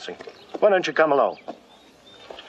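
A man speaks up close.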